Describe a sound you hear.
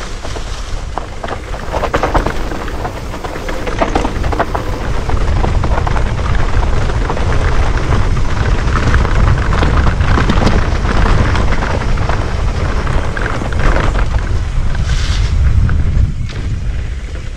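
A mountain bike rattles over bumps in the trail.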